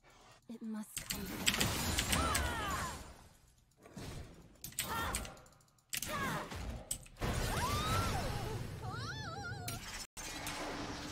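Magic spell effects burst and crackle during a fight.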